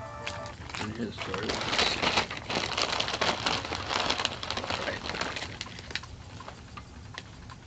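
A crisp packet crinkles and rustles close by.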